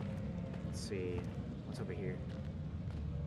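A young man talks quietly into a headset microphone.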